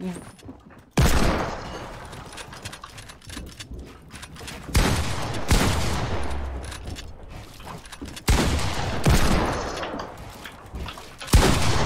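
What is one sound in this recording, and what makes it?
Gunshots fire loudly in quick bursts.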